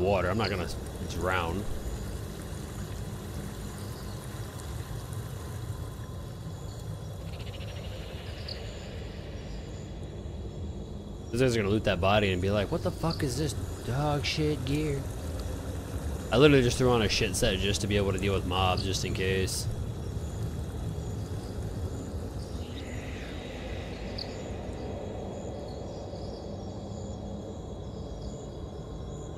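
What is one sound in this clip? A river rushes steadily over rocks.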